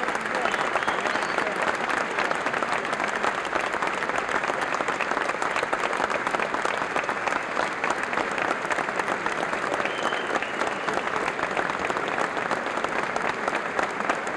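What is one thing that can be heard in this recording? A large crowd applauds loudly and steadily in a big echoing hall.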